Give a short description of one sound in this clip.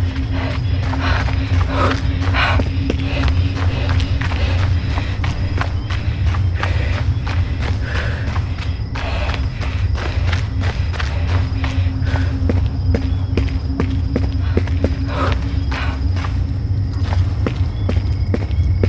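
Footsteps crunch steadily over dirt and grass.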